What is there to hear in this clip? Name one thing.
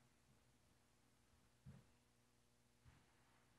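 Footsteps tread softly on a hard floor.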